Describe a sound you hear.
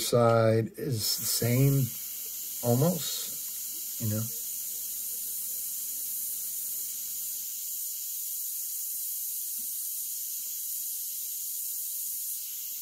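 An airbrush hisses steadily with a soft rush of air.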